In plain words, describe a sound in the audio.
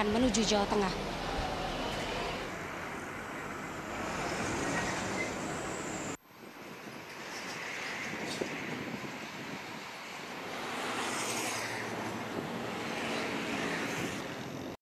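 Vehicle engines idle and rumble in slow traffic.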